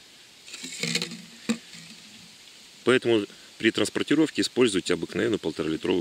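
A plastic bottle crinkles as it slides over a plastic pipe.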